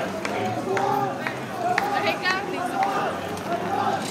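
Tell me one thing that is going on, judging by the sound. A marching band plays in the street.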